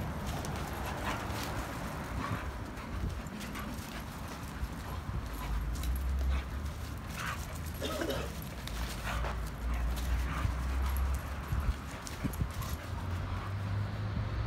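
Two dogs scuffle and play-fight on dirt.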